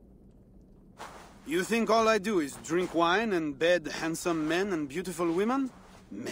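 A man speaks calmly and earnestly, close by.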